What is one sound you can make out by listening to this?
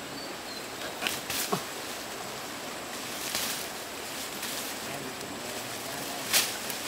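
Leafy branches rustle as they are pulled.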